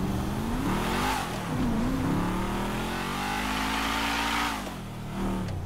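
Car tyres screech on pavement.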